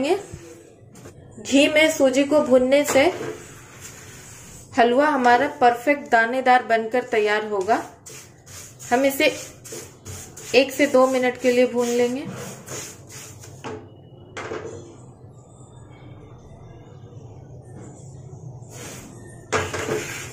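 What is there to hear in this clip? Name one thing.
A spatula scrapes and stirs crumbly food in a pan.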